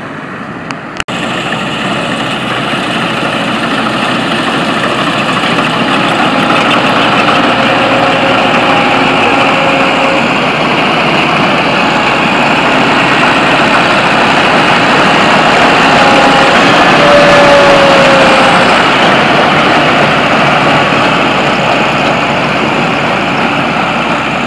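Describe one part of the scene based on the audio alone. A combine harvester engine roars steadily and grows louder up close.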